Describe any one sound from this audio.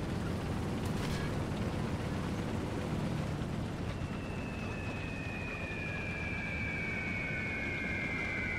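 A propeller plane drones overhead.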